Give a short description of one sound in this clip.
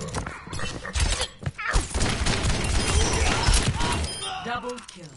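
Gunshots fire in quick bursts, close by.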